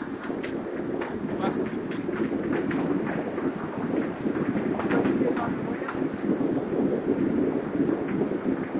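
A heavy machine's engine rumbles steadily close by.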